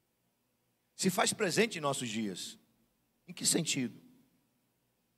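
A middle-aged man speaks with animation into a microphone.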